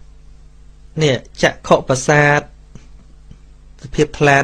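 A man speaks in a chanting voice into a microphone.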